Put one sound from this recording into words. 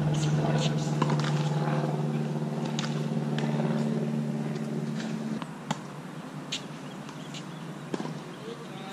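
Tennis balls are struck with a racket.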